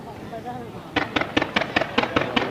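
Fireworks crackle and pop in quick bursts.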